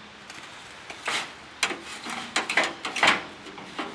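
A metal wheelbarrow clatters and rattles.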